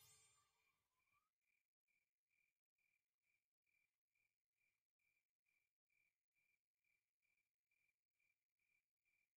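A soft electronic chime pulses steadily, about twice a second.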